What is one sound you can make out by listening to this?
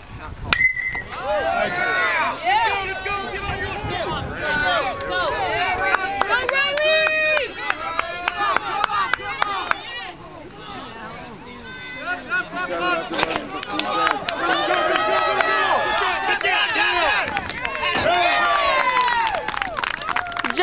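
A crowd of spectators cheers and shouts loudly outdoors.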